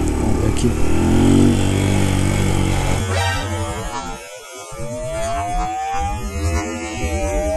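A motorcycle engine rumbles and revs close by.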